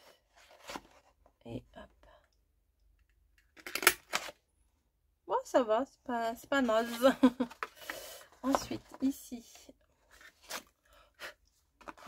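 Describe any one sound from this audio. Stiff paper rustles and crinkles.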